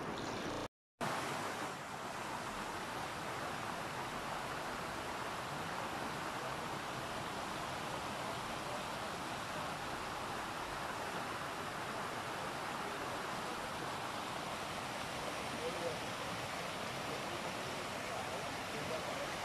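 A shallow stream babbles and splashes steadily over stones.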